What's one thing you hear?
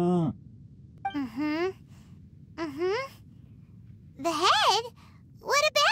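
A young girl speaks quickly with animation in a high voice.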